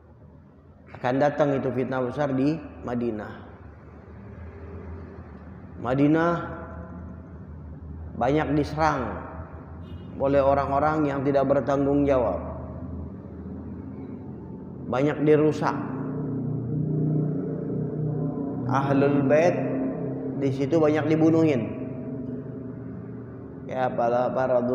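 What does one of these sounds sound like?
A man recites in a long, melodic chanting voice through a microphone in an echoing hall.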